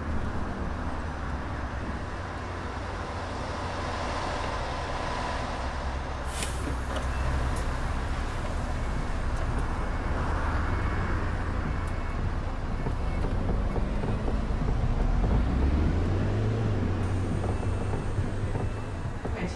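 A bus engine rumbles steadily at low speed.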